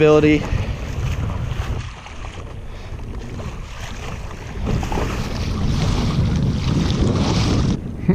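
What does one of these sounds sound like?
Water splashes against the hull of a small boat as it moves through the waves.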